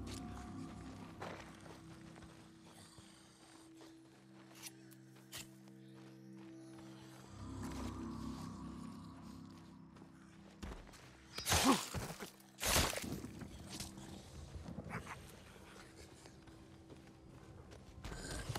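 Footsteps crunch and rustle through grass and brush.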